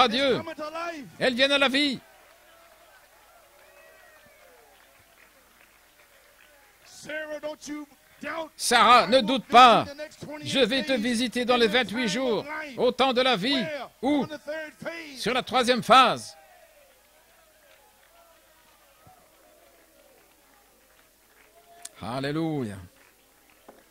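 An elderly man sings with fervour through a microphone.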